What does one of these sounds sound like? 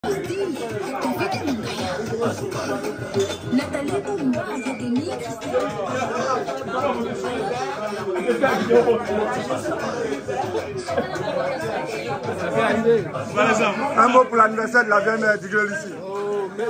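A crowd of men and women chatters.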